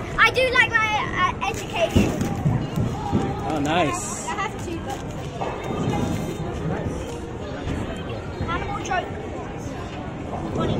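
Young children talk excitedly close by.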